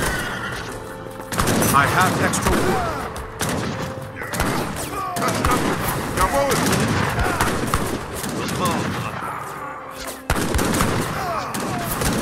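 Muskets fire in scattered shots and volleys.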